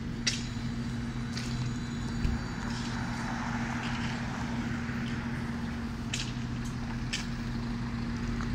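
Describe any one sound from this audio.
A car drives by on the road.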